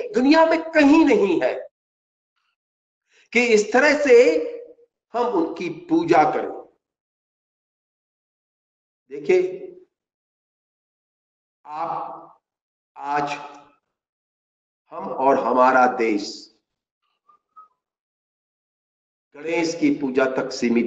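An elderly man speaks with animation through a microphone, in bursts with long pauses.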